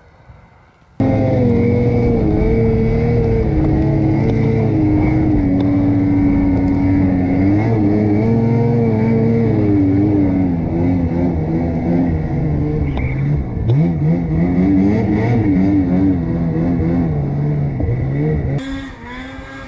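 A snowmobile engine roars loudly up close, its pitch rising and falling as the rider climbs.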